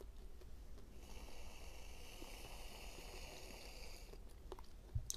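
Jelly sweets squelch as fingers pull them apart.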